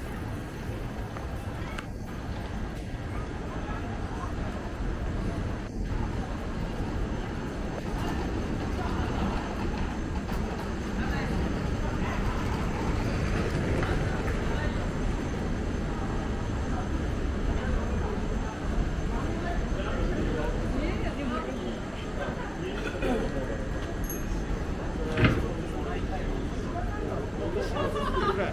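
A crowd of people chatters nearby in the open street.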